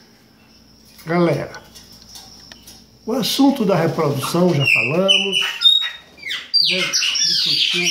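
A bird squawks and whistles loudly nearby.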